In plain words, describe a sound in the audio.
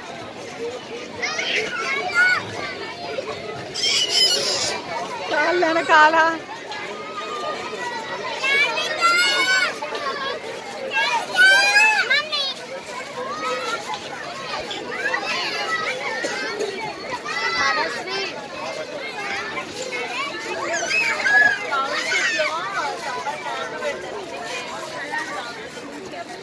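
Children thump and bounce on an inflatable.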